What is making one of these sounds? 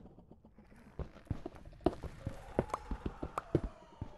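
A pickaxe chips rapidly at stone.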